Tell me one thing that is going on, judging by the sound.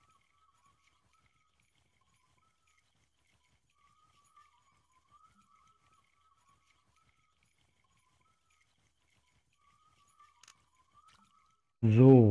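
A fishing reel whirs softly as line is wound in.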